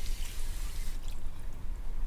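A toothbrush scrubs teeth briefly.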